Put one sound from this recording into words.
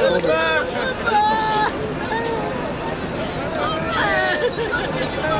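A crowd of women sing loudly together close by.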